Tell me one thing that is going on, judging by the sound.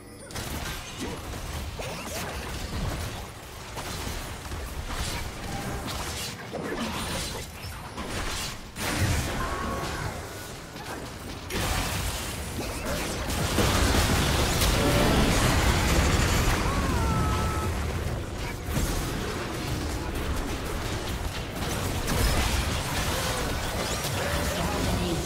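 Game spell effects whoosh, crackle and clash in a fight.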